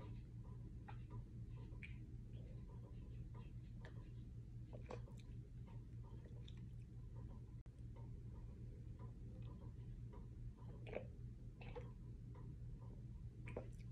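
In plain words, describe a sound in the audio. A woman gulps a drink from a can.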